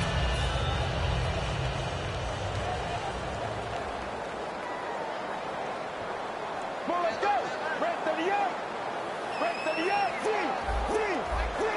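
A large crowd murmurs and roars steadily in a stadium.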